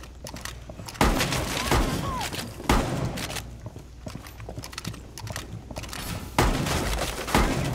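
Gunshots fire in bursts and echo loudly.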